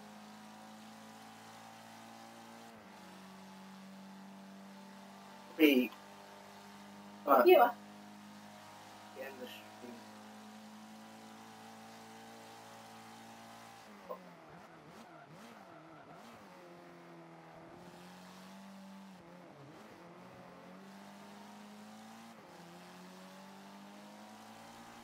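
A car engine hums steadily and then revs up and down.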